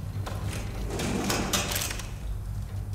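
A metal cabinet door clanks open.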